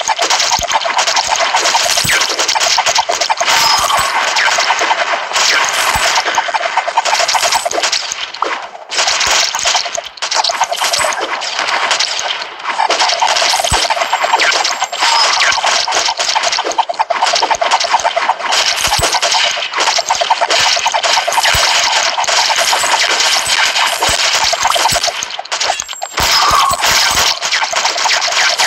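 Game sound effects of rapid shooting and hits play continuously.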